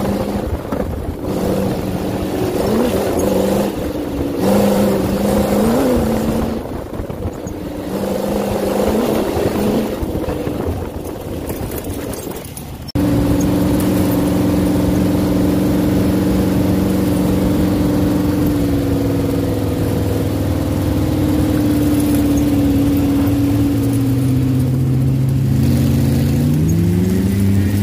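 A dune buggy engine roars loudly.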